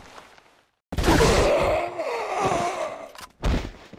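A gun fires loud, booming shots.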